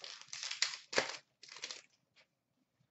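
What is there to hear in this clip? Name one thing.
Trading cards rustle and slap as they are shuffled by hand.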